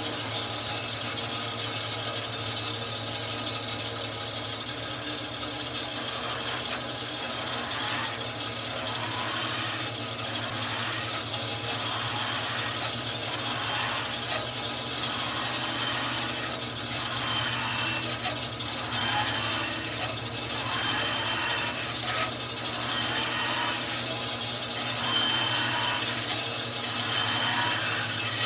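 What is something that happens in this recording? A band saw motor hums steadily.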